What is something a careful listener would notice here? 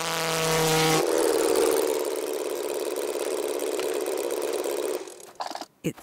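A model plane engine idles nearby with a steady rattling buzz, then cuts out.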